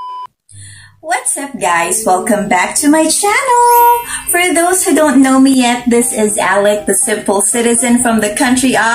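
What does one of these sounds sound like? A young woman sings close to a microphone.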